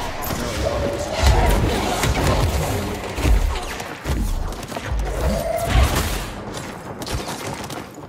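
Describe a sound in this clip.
Loud blasts boom and crash.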